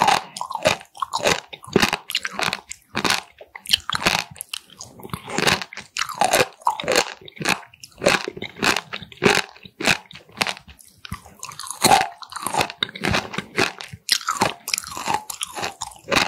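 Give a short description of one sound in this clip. Chopsticks click against a glass bowl.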